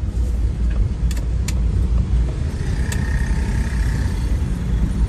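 Motorbike engines idle and putter nearby.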